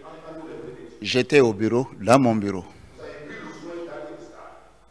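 A man answers calmly through a microphone.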